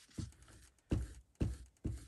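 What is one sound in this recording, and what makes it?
A glue stick rubs across paper.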